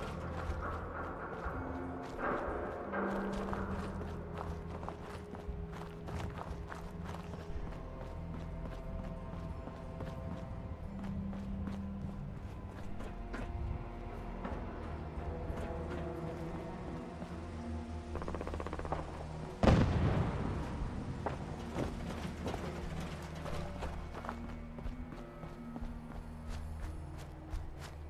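Footsteps crunch over rubble and hard ground.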